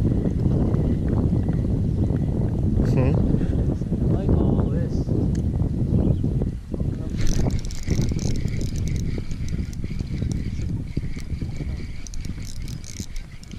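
A fishing reel clicks and whirs as line is reeled in.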